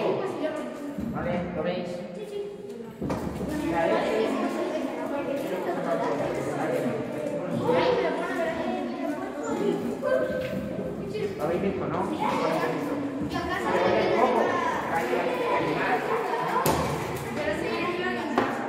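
A man speaks calmly to children nearby in a room with some echo.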